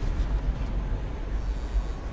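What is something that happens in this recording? A large fan whirs with a low, steady rumble.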